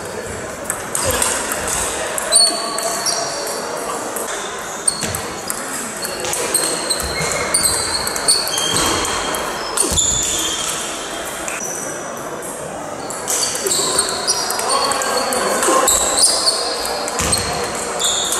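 A table tennis ball clicks back and forth off bats and the table in a large echoing hall.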